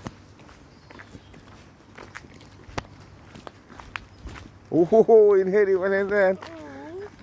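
A dog's paws rustle through wet grass.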